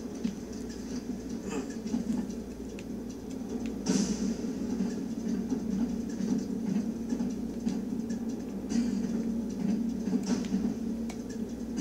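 Video game sounds play from a television.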